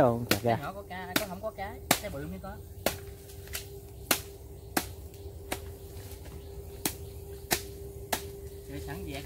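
A blade chops sharply into woody roots again and again at a steady pace.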